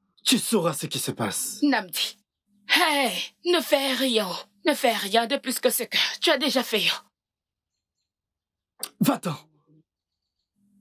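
A man speaks with animation nearby.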